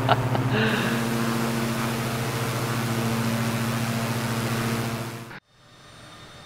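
A propeller plane's engine drones steadily, then cuts off suddenly.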